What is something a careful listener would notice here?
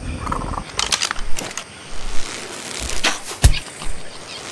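Blows land with sharp thumps.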